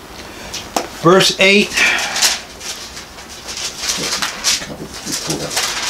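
An elderly man speaks in short phrases close by.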